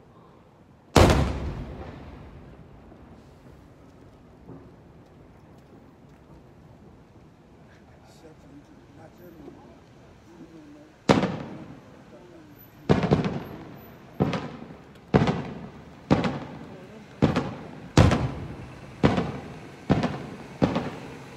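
Fireworks explode with loud, booming bangs that echo away.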